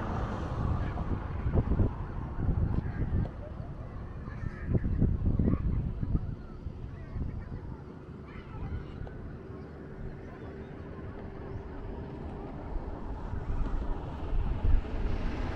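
Wind gusts roughly past outdoors.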